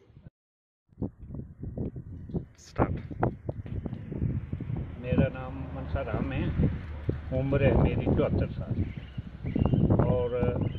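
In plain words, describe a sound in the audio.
An elderly man speaks firmly, close by, outdoors.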